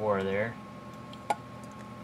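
A drink pours into a glass.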